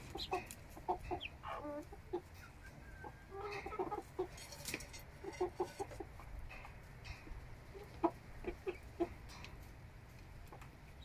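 Chickens peck at food.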